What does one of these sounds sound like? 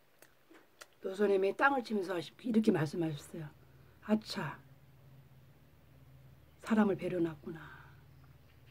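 A woman speaks calmly and close by, with pauses.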